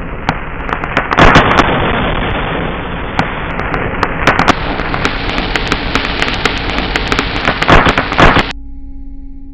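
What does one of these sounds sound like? A firework fizzes and crackles loudly, with sharp pops.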